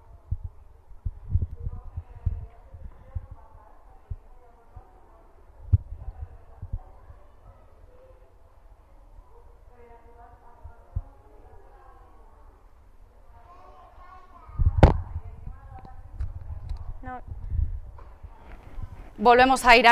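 A young woman reports steadily into a microphone.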